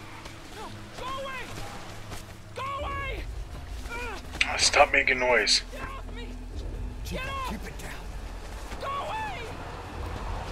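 A boy shouts in panic, close by.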